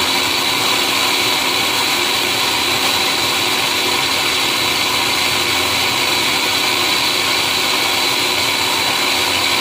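A blender motor whirs loudly and steadily.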